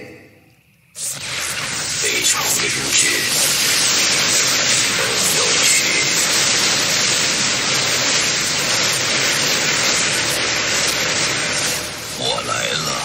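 Energy weapons crackle and blast in a loud battle.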